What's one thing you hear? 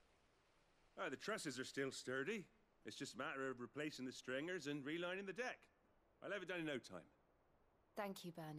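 A man speaks calmly and explains at length.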